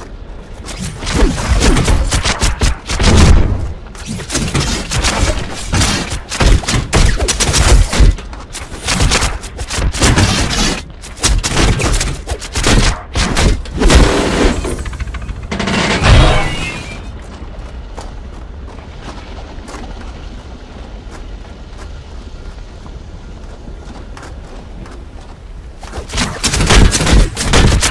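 Rapid blows and clashes of combat ring out.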